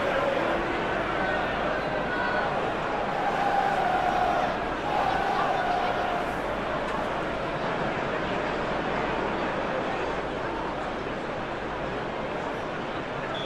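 A large stadium crowd roars and chants steadily.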